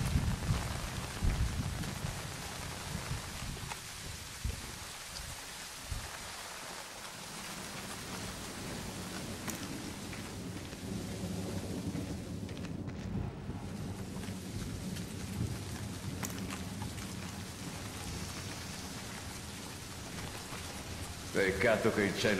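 Footsteps tread softly on the ground.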